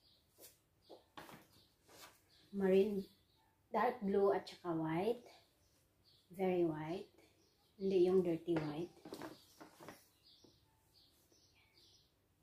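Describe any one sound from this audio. Cloth rustles as fabric is handled.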